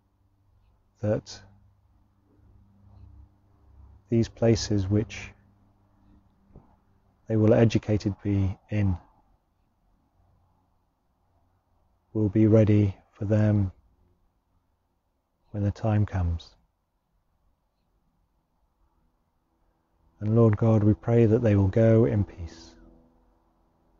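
A man speaks calmly and slowly into a close microphone, pausing between phrases.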